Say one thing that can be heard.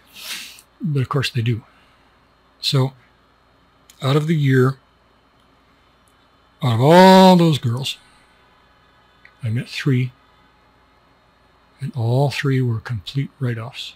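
A middle-aged man speaks calmly and closely into a microphone, with pauses between phrases.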